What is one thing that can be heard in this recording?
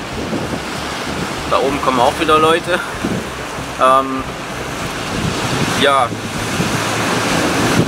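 Waves wash against rocks nearby.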